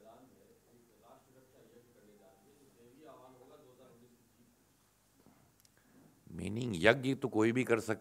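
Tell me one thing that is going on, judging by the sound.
A man speaks calmly into microphones.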